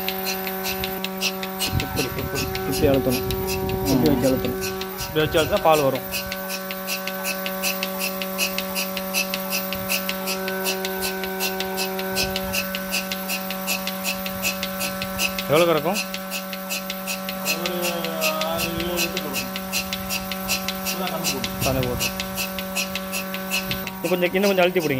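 A milking machine pulses with a fast, steady clicking rhythm.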